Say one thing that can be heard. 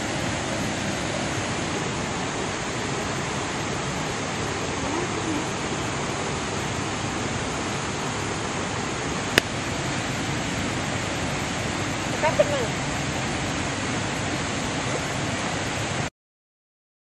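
A stream rushes steadily nearby.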